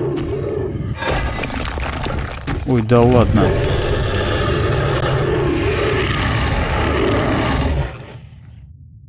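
A monster lets out a loud, deep roar.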